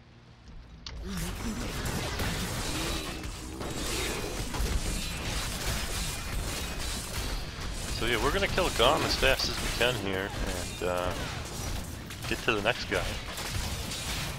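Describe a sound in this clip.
Fiery spells crackle and explode in a fight.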